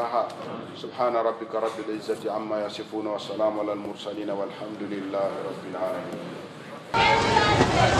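A man preaches with emphasis into a microphone.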